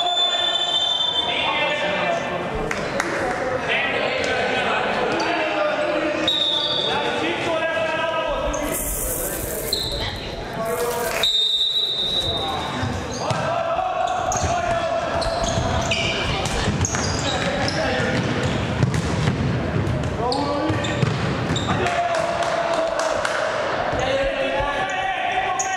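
Young men shout across a large echoing hall.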